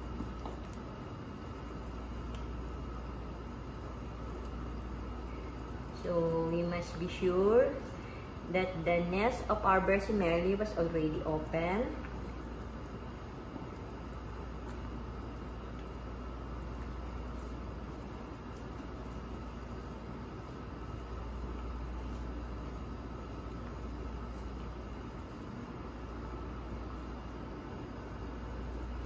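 A wooden spoon stirs through boiling water.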